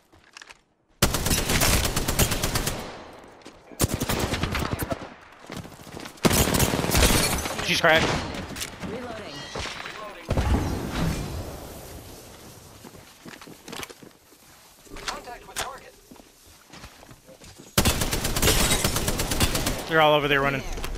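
A rifle fires in rapid bursts of loud shots.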